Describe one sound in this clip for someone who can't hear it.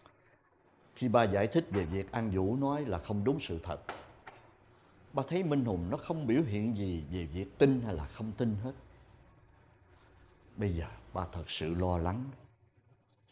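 A middle-aged man speaks nearby in a stern, questioning tone.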